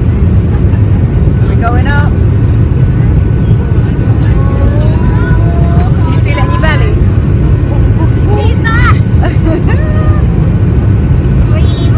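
A steady low roar of aircraft engines fills the cabin.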